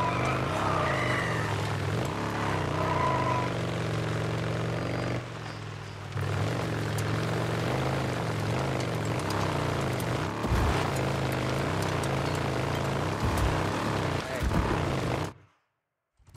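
A motorcycle engine hums steadily and revs as it rides along.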